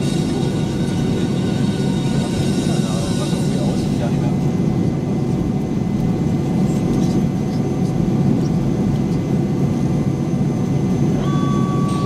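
Jet engines roar steadily from inside an airliner cabin as it taxis.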